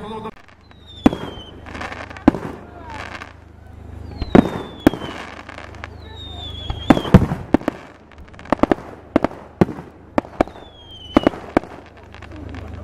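Fireworks burst with loud, sharp bangs.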